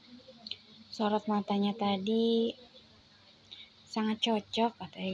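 A woman speaks close to a microphone.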